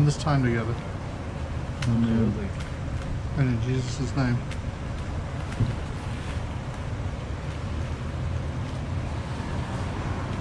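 Paper wrappers rustle.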